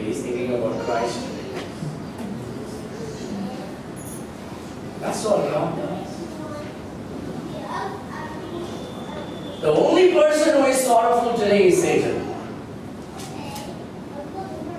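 A man speaks calmly into a microphone in an echoing room, with pauses between phrases.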